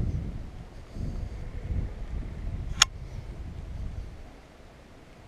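Wind gusts buffet outdoors with a low rumble, then die down.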